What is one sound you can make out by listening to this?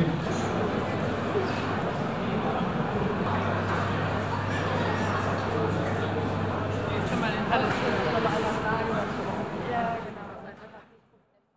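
Many voices chatter in a large echoing hall.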